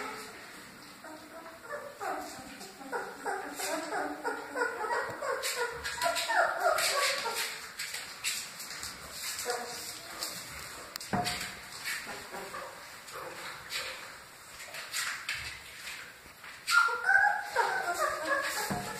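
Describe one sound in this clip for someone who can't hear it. Puppies whine and squeal up close.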